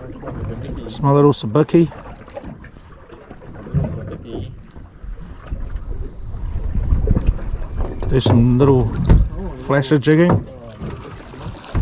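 Water laps and splashes gently nearby.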